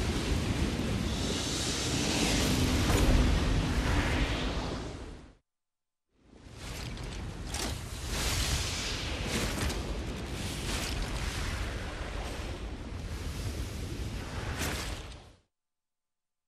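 Lava roars and rumbles loudly.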